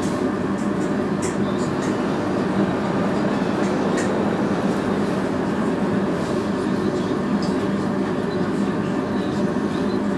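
A cargo bicycle rolls along a paved street.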